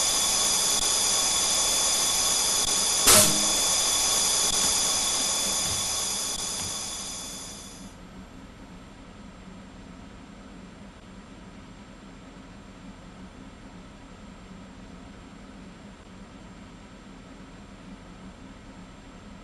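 A stationary train's equipment hums steadily and quietly.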